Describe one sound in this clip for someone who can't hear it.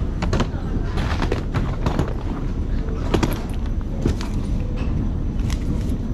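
A suitcase rolls across a hard floor.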